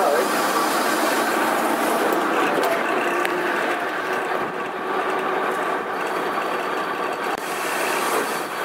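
A bus engine hums as the bus drives along the road.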